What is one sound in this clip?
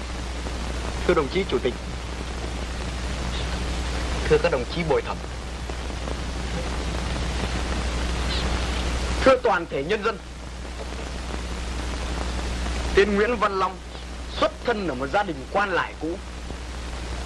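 A man speaks in short, calm phrases.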